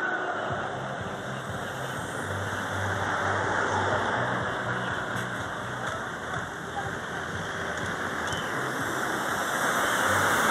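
Road traffic rumbles steadily past outdoors.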